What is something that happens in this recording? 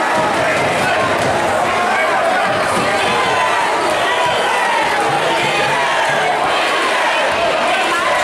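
A large crowd cheers and chatters loudly in an echoing gym.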